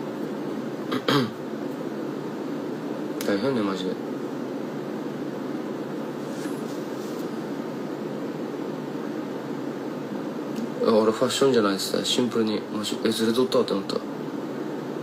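A young man speaks quietly in short bursts, close to a phone microphone.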